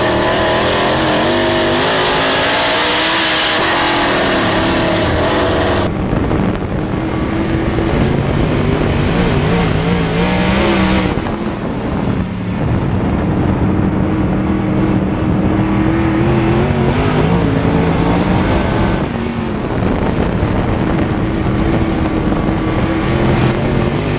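A race car engine roars loudly, rising and falling in pitch as it accelerates and slows.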